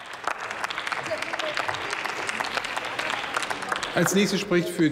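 Applause rings out in a large hall.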